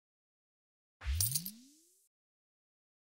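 A short bright chime rings out.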